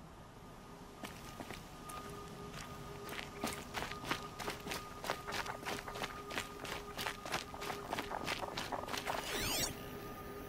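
Footsteps crunch quickly over snowy ground.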